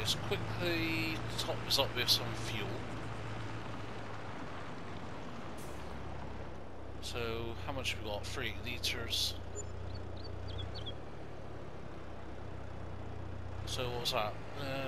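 A tractor engine hums steadily at low idle.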